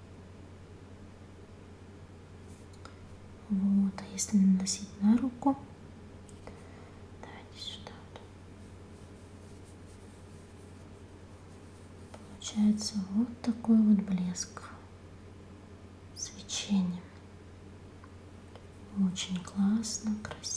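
Fingers softly rub lotion into skin close by.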